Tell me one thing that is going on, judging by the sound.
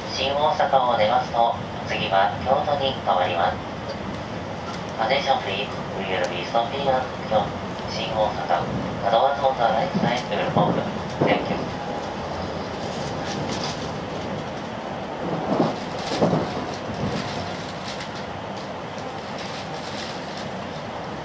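A train rumbles and hums steadily while moving.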